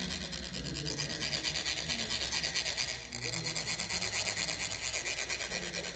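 Metal funnels rasp rapidly and steadily as sand is poured.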